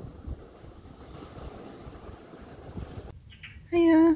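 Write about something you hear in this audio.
Waves wash gently onto a pebble beach.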